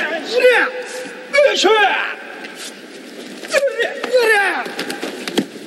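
A man gives loud, sharp shouts.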